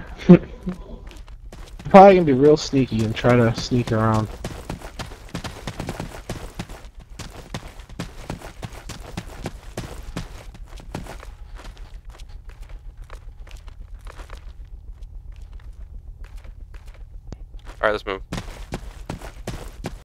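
Footsteps crunch steadily over dry, rocky ground.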